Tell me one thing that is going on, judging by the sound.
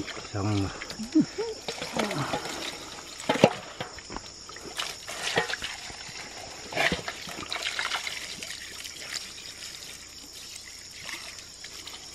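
A stream of water runs from a pipe and splashes into a basket.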